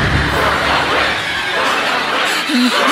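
Men shout loudly in alarm.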